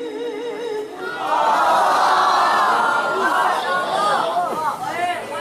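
A crowd cheers and calls out loudly.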